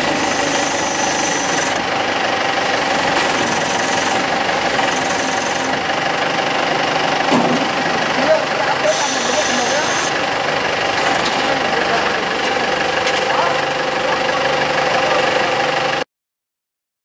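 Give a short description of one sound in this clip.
A forklift engine runs with a steady rumbling hum.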